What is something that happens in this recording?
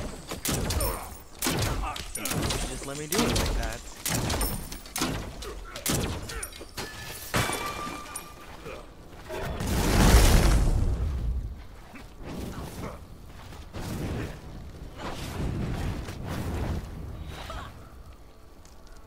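Magic attacks blast and crackle in quick bursts.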